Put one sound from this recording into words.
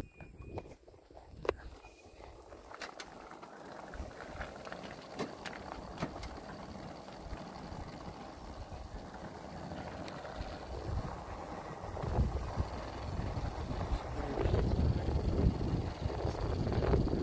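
A moving car's tyres rumble steadily on the road, growing louder.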